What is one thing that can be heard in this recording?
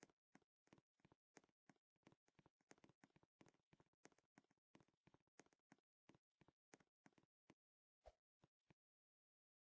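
Quick footsteps patter rapidly on a hard surface.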